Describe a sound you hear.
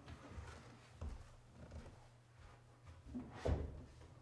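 Footsteps shuffle on a wooden floor.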